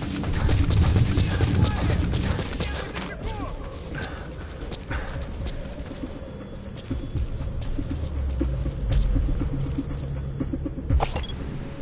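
Footsteps crunch quickly over rough gravel.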